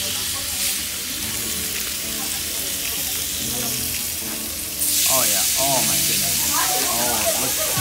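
Meat sizzles loudly on a hot grill plate.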